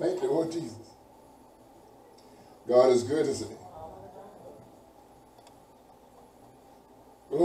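A man speaks slowly and deliberately in a small room, with pauses between phrases.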